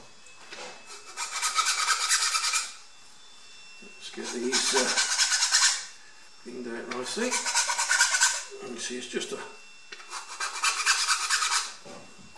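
A sanding stick scrapes against balsa wood in repeated bursts.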